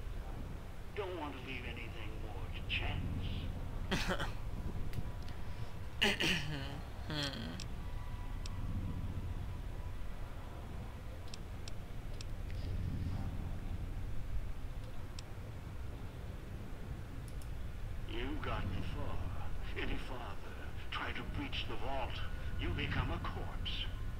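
An elderly man speaks gravely and slowly through an intercom.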